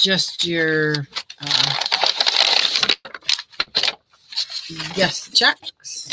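Pages of a small paper booklet flip and rustle.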